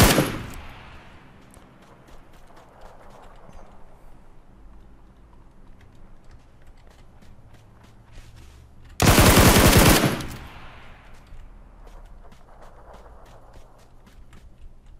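Footsteps crunch quickly on dirt and gravel.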